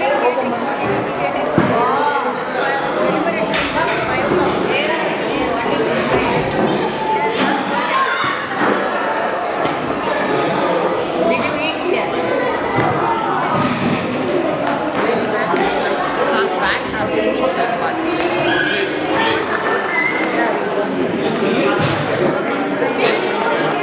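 Many children and adults chatter at once in a large echoing hall.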